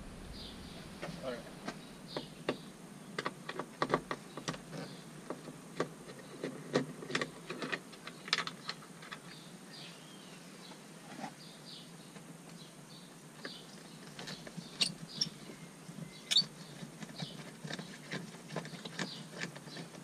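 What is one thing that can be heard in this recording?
Plastic clicks and creaks as a door handle trim is pried loose.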